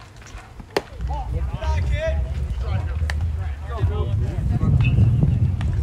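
Players call out across the field from a distance.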